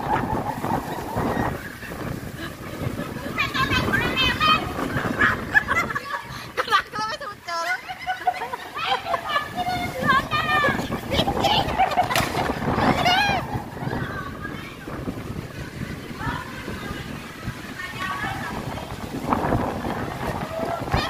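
A crowd of women talks in agitated voices nearby.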